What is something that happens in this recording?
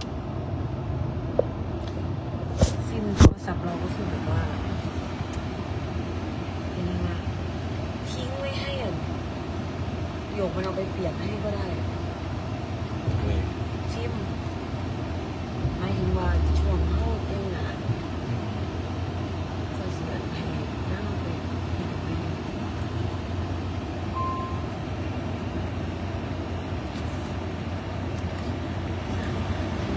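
A car engine hums steadily inside a cabin.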